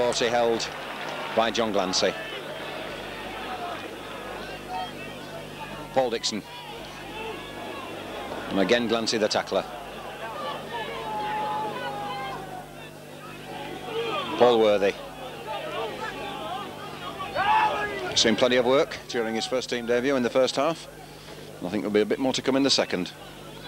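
A crowd murmurs and cheers from the stands outdoors.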